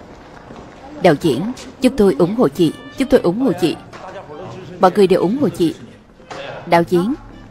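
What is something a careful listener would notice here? A young woman speaks with animation into a microphone, amplified in a large echoing hall.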